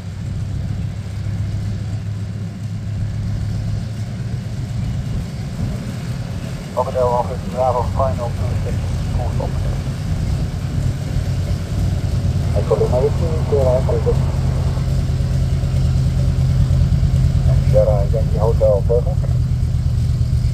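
A propeller plane's engine runs with a low, steady throbbing drone that grows louder as the plane comes closer.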